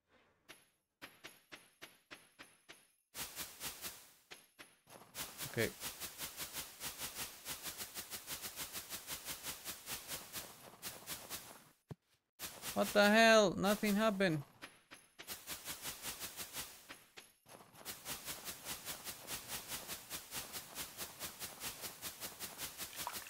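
Quick footsteps crunch on snow.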